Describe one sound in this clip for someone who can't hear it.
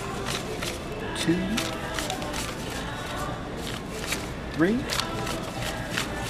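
Paper money rustles as a cashier counts bills.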